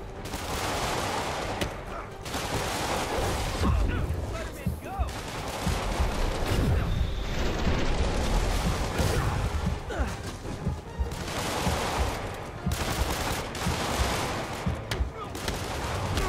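Punches and kicks thud in a fast brawl.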